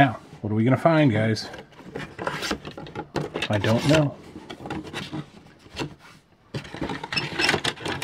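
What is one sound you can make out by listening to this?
Cardboard flaps rustle as a box is opened.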